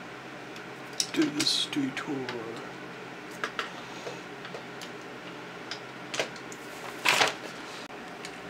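Plastic toy parts click and clatter as they are handled.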